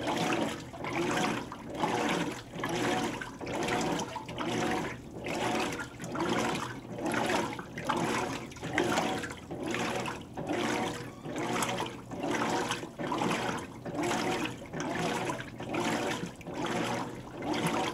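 Water sloshes and churns in rhythmic surges as a washing machine agitates.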